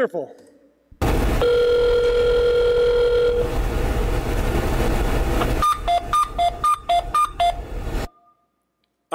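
A harsh recording of hissing noise and short beeps plays through loudspeakers.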